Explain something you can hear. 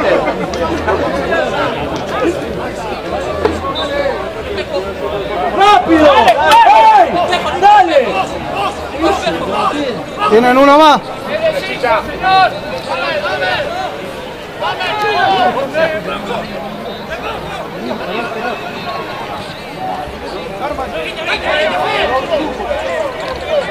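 Young men shout to one another across an open field.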